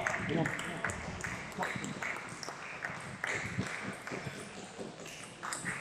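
A table tennis ball clicks back and forth off paddles and table in an echoing hall.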